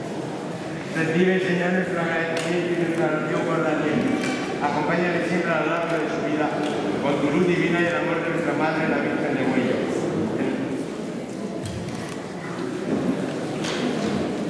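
An elderly man reads aloud in a steady, chanting voice, echoing in a large hall.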